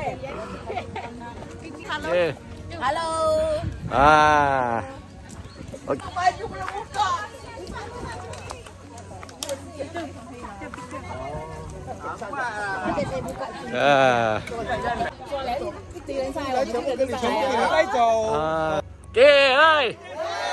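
A group of men and women chat and call out nearby, outdoors.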